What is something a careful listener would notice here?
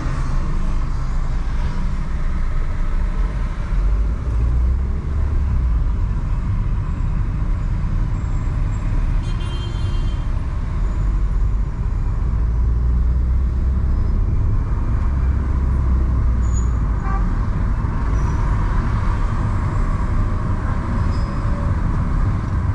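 Tyres roll on the road with a steady low rumble.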